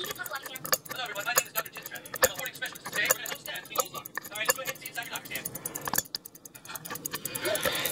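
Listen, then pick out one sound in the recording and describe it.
Metal tweezers tap against a watch movement.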